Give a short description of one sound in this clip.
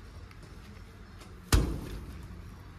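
A heavy metal wheel clanks as it is set down on the ground.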